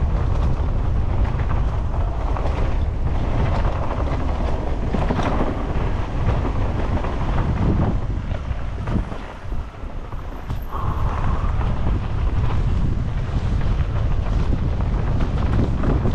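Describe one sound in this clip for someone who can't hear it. A motorcycle engine rumbles and revs up and down.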